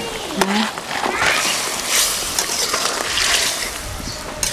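Fish pieces splash into bubbling curry.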